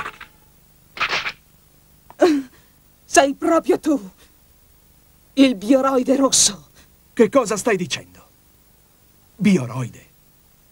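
A young woman speaks tensely and coldly.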